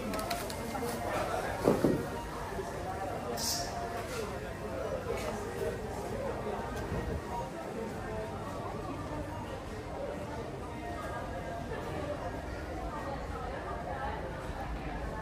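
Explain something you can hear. A crowd murmurs softly.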